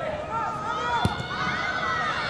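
A football is kicked hard with a thump.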